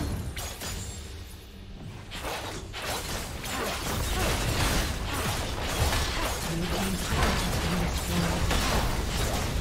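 Video game spell effects crackle and burst in rapid clashes.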